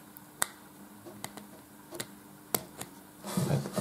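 A cable plug clicks into a phone's port.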